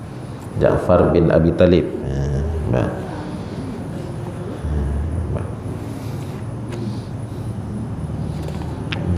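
A man speaks through a microphone in an echoing hall, calmly and with emphasis.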